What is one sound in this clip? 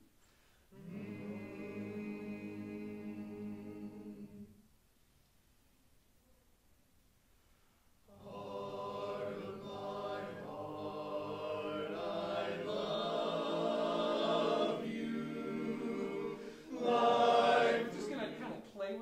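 A men's choir sings a held chord together.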